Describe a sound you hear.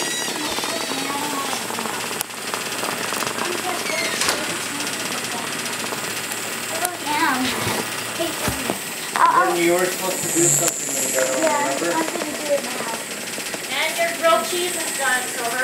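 Small vibrating toy bugs buzz and skitter across a hard floor.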